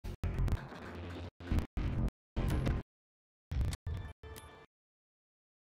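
Short menu clicks and tones sound in quick bursts.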